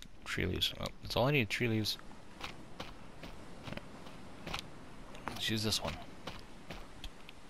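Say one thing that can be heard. Footsteps rustle through grass and low plants.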